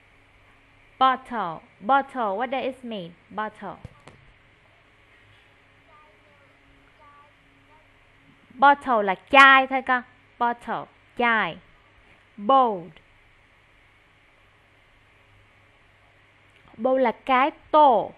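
A woman speaks clearly and slowly over an online call, as if teaching.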